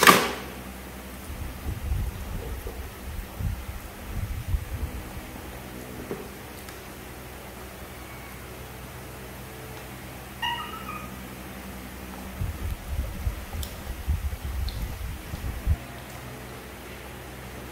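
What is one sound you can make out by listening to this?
Young macaques chew and smack on mango flesh.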